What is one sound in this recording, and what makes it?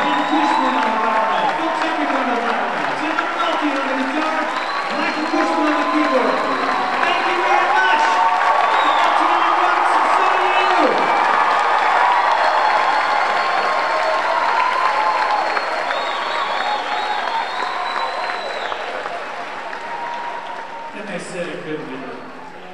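A large crowd of young people cheers and whoops in a large echoing hall.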